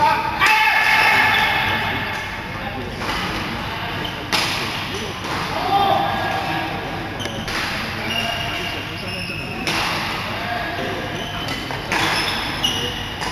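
Shuttlecocks are struck with rackets with sharp pops in a large echoing hall.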